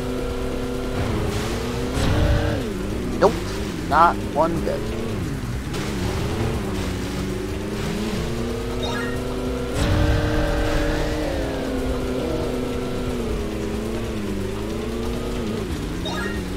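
A jet ski engine whines steadily, its pitch rising and falling with speed.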